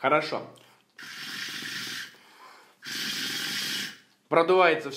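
A man exhales a long breath of smoke.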